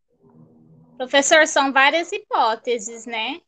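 A second woman speaks with animation over an online call.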